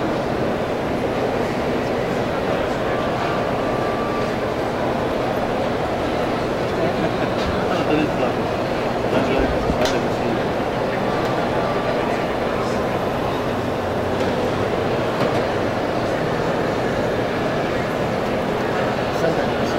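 A man talks calmly and steadily close by.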